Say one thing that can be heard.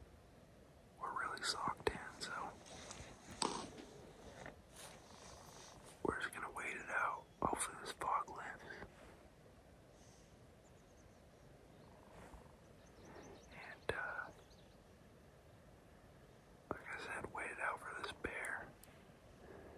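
A young man talks quietly and calmly close by, outdoors.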